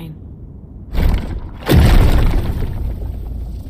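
A burst of energy erupts with a deep, loud roar.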